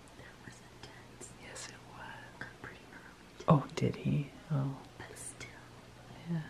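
A young woman speaks softly and closely.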